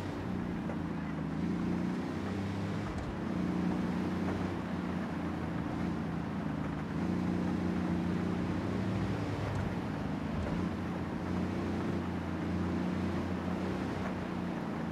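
A car engine hums steadily as the vehicle drives.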